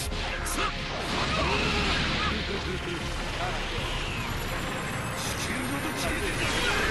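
Punches and energy blasts crash and whoosh in a fighting game.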